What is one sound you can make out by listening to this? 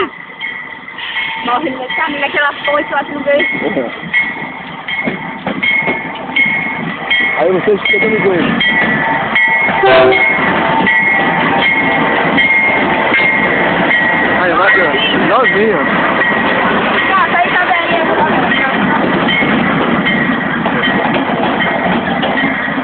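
A freight train's diesel engines rumble as it approaches and passes close by.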